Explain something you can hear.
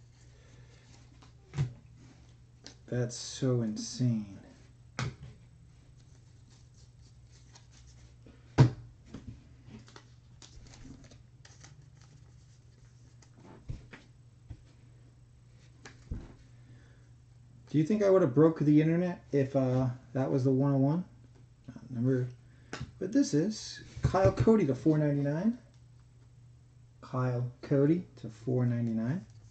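Trading cards rustle and flick as hands sort through them.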